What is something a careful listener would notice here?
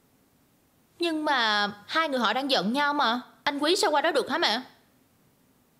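A young woman speaks with upset, close by.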